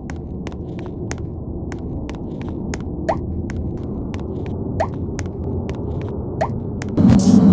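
A countdown timer ticks steadily.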